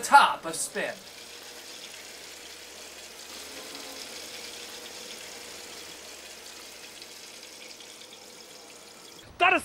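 Water swirls and drains softly from one bottle into another.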